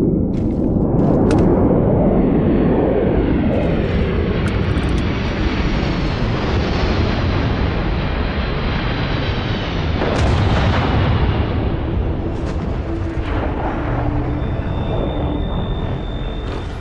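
A spacecraft engine roars nearby.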